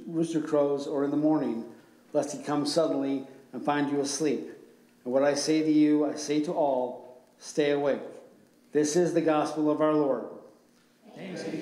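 An elderly man reads aloud calmly through a microphone.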